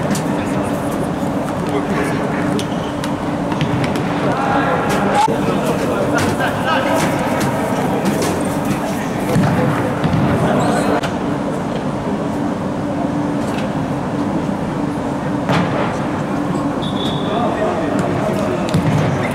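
A ball is kicked hard on an indoor court, thudding in an echoing hall.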